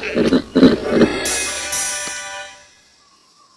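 A short cheerful victory jingle plays.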